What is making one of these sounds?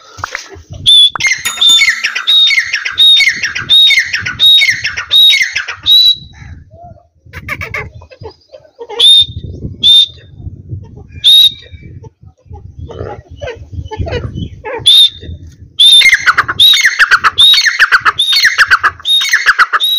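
A partridge calls loudly in quick runs of sharp, repeated notes.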